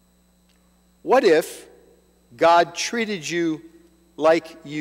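An older man speaks with emphasis into a microphone.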